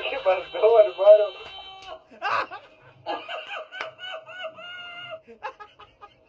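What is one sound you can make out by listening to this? Video game music plays from a television speaker.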